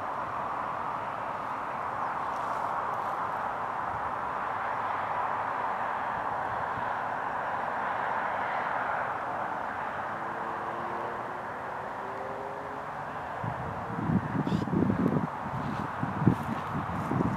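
A steam train chuffs steadily in the distance.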